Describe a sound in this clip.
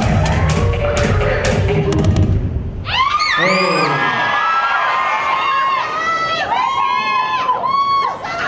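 Loud electronic dance music with heavy beats plays over loudspeakers.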